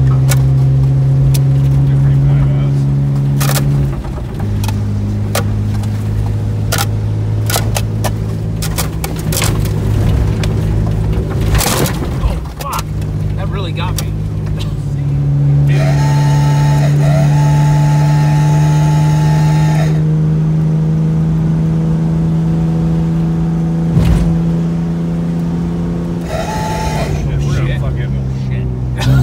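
A car engine hums steadily, changing pitch as it shifts gears.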